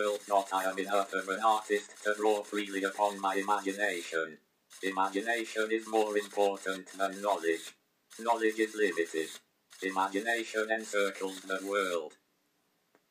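A robotic voice speaks in short phrases.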